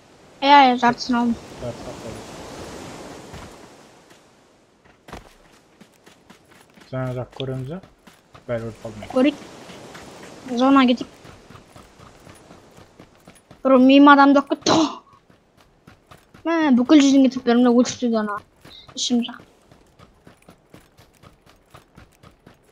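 Footsteps run quickly over ground in a steady rhythm.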